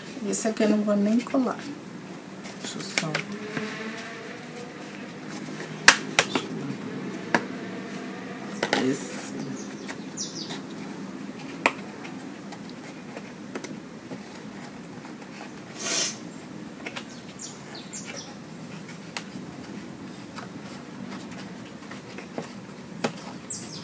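Stiff card taps and slides on a cutting mat.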